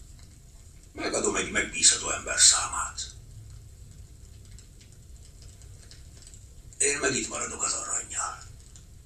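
An older man speaks in a low, calm voice close by.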